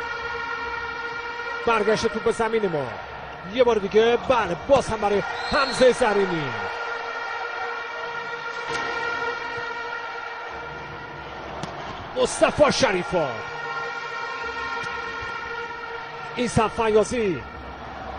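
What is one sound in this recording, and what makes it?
A volleyball is struck hard with a sharp smack.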